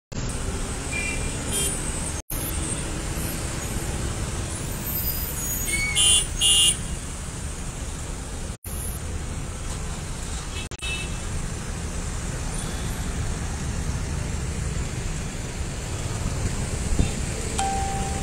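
Traffic rumbles steadily in a slow jam outdoors.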